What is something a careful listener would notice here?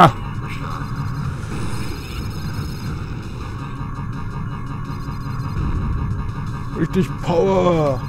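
Video game laser shots fire in rapid bursts.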